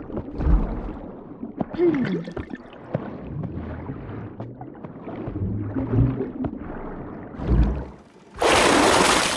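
Water churns and rumbles underwater.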